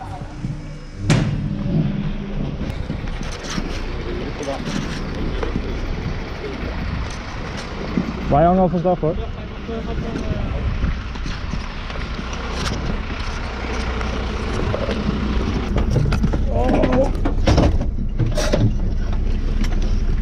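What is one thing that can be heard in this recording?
A vehicle engine idles with a low rumble.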